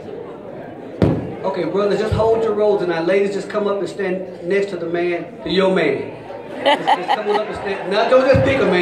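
A man speaks through a loudspeaker that echoes around the hall.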